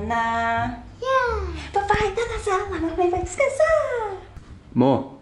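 A toddler squeals and babbles excitedly close by.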